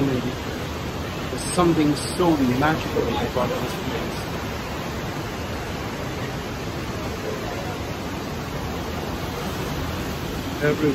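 Rushing river water roars steadily outdoors.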